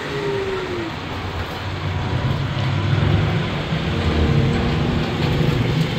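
A rope rubs and creaks as it is pulled taut against a metal frame.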